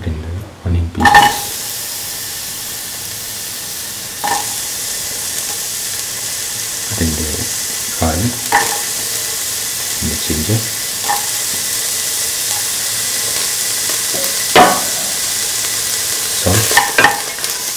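Onions sizzle steadily in hot oil.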